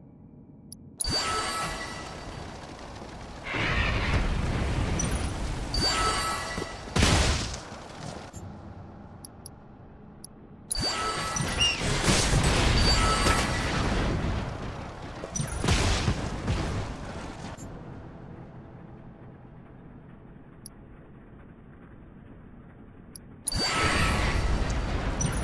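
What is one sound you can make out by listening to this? Explosions and blasts boom in a game battle.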